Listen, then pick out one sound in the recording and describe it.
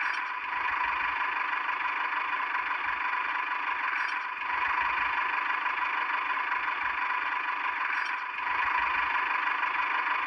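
A small toy electric motor whirs steadily.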